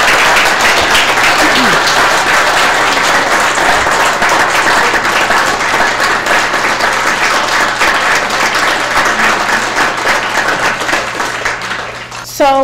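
A large crowd claps and applauds loudly, then fades.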